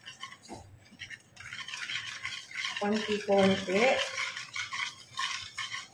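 Liquid pours from a can into a bowl.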